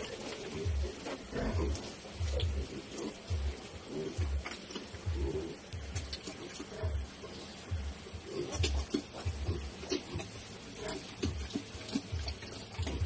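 A sow grunts in low, rhythmic bursts close by.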